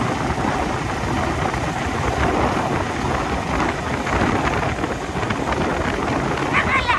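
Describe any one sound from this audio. Wind rushes loudly past the rider outdoors.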